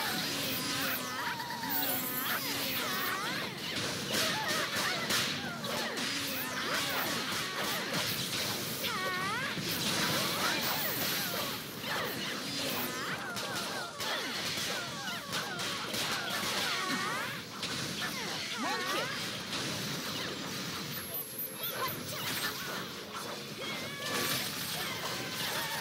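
Spell effects and weapon strikes clash and crackle in a game battle.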